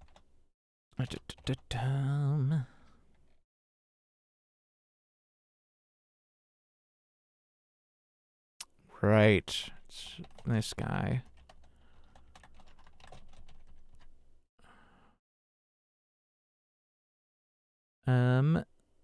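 A man speaks casually and close to a microphone, in short bursts with pauses.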